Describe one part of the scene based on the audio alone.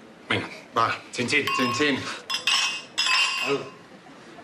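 Wine glasses clink together.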